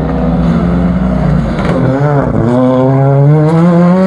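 A racing car roars close by as it passes.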